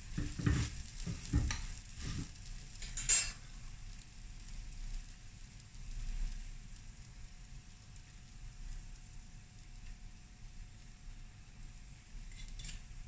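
Food sizzles faintly in a hot pan.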